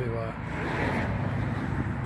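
Footsteps scuff on paving stones outdoors.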